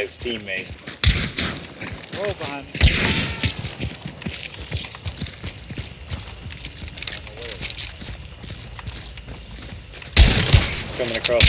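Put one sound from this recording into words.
A shotgun fires with loud booming blasts.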